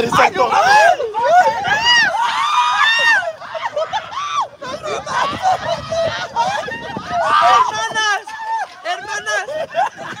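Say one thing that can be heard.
A group of people shouts and cheers excitedly.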